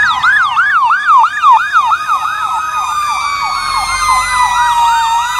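Fire engine sirens wail rapidly up and down close by.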